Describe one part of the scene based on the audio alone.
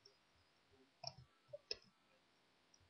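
Soft electronic blips from a video game sound briefly.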